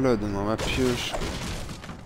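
A pickaxe strikes a wooden crate with hollow knocks.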